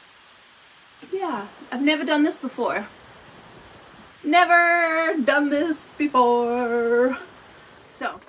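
A young woman speaks close by with animation.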